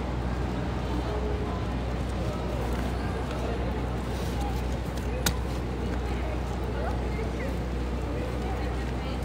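A harp is plucked softly outdoors.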